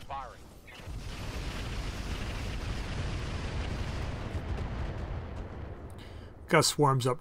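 Missiles roar and whoosh through the air.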